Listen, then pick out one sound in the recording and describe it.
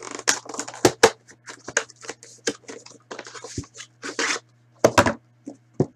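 A box lid slides open with a papery scrape.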